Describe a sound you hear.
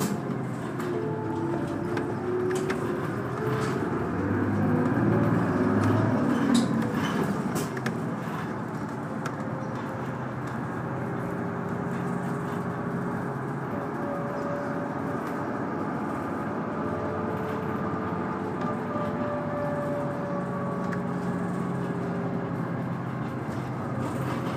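A train rumbles and hums steadily along the tracks.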